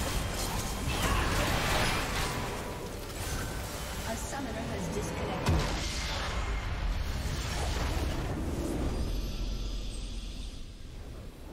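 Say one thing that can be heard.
Spells and weapons clash in a game battle with bursts and blasts.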